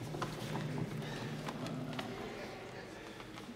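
A man speaks in a low voice in a large hall.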